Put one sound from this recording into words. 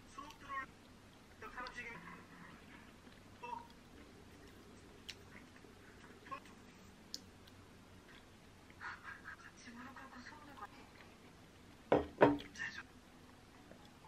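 A woman chews food wetly, close up.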